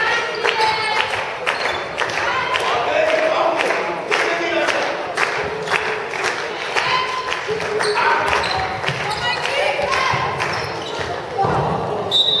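A ball bounces with hollow thuds in a large echoing hall.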